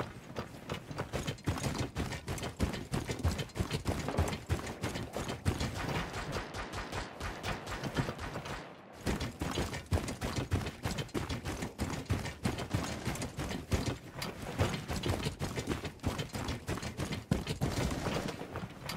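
Running footsteps crunch on snow.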